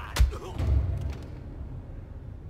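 Soft footsteps shuffle on a hard floor.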